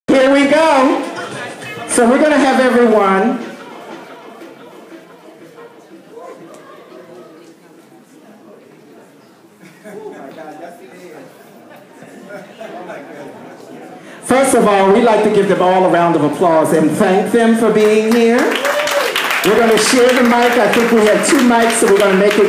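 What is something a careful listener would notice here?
A woman speaks with animation into a microphone in a large echoing hall.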